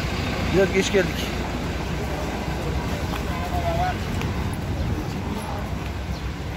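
A bus engine rumbles nearby.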